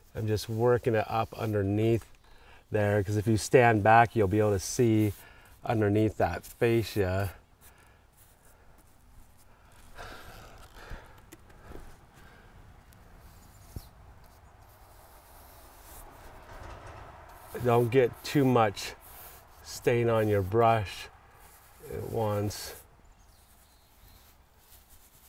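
A paintbrush brushes softly against wooden boards.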